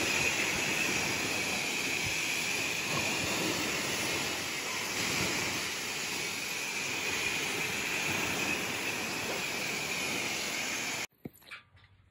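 A pressure washer sprays water with a steady hiss.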